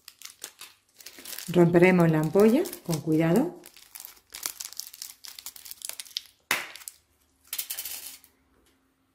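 Paper packaging crinkles and tears open.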